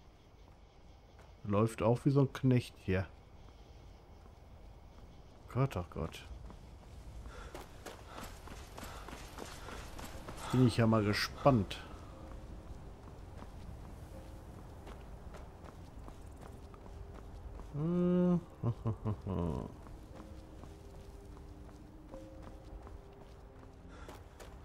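Footsteps crunch on a stone path.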